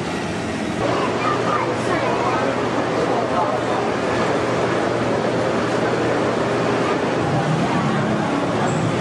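A crowd of men and women chatters all around in a busy indoor hall.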